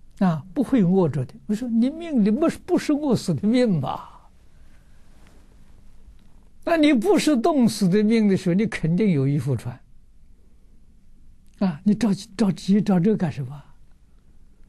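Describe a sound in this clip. An elderly man speaks calmly and warmly into a close microphone, in short phrases with pauses.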